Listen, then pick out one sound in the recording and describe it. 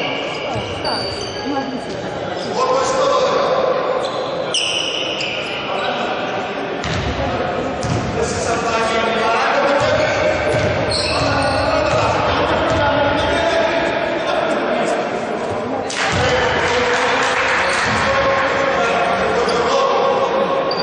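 A small crowd murmurs and cheers in the stands.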